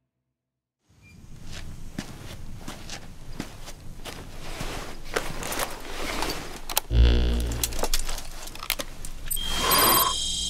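Clothing rustles as a man crouches and handles gear.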